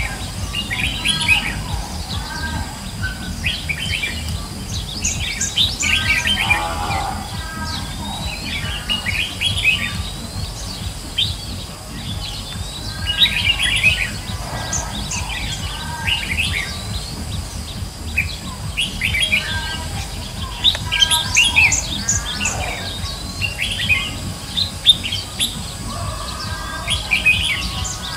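Caged birds chirp and warble in quick bursts, outdoors.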